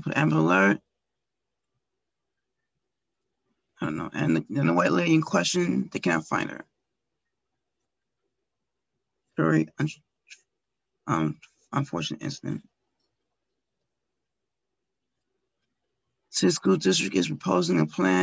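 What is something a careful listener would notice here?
An older woman speaks calmly and close, as if over an online call.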